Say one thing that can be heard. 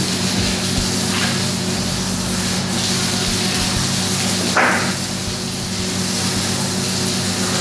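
A knife cuts through meat on a table.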